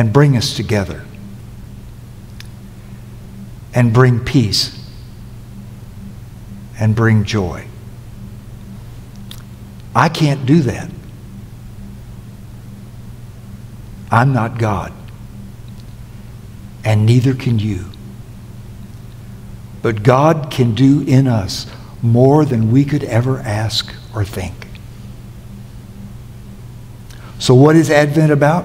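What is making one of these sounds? An elderly man speaks slowly and emphatically through a microphone, with long pauses, in an echoing hall.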